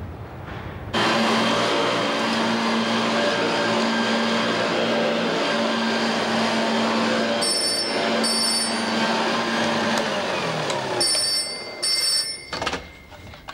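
A vacuum cleaner runs with a steady roar.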